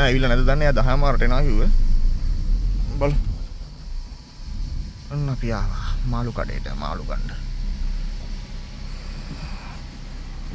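A car engine runs at low speed.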